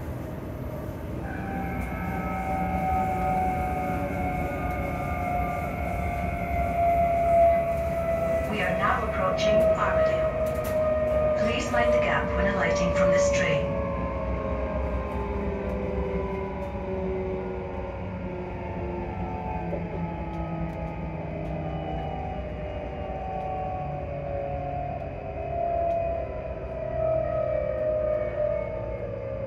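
A train hums and rumbles steadily as it moves along the track.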